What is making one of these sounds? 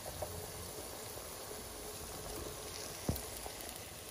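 Meat pieces slide off a plate into a pan with a soft thud.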